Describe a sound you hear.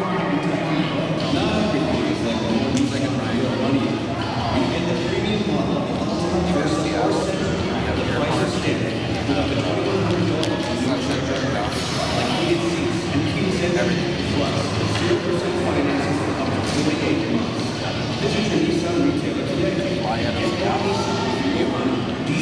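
Children and adults talk and call out in a large echoing hall.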